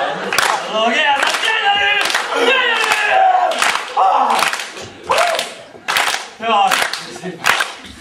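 A young man sings out loudly and with feeling.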